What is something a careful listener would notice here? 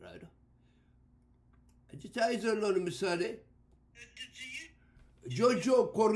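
An elderly man speaks with animation close to a microphone.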